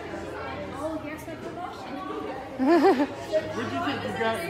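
Two women laugh loudly together.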